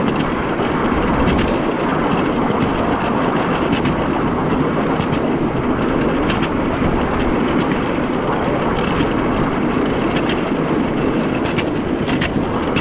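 A small train rumbles steadily along narrow rails outdoors.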